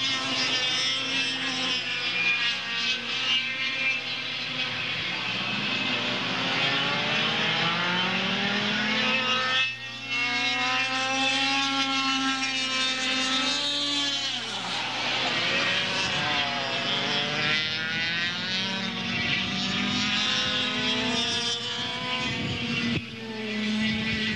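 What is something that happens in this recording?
A kart engine buzzes loudly, its pitch rising and falling as it speeds up and slows down.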